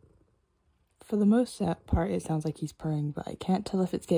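A young woman speaks softly, very close to the microphone.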